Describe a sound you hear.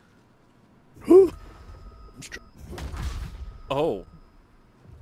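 Blades strike and clash in a fight.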